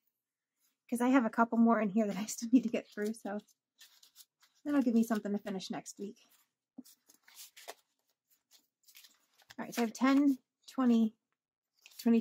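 Paper bills rustle and flap as they are counted.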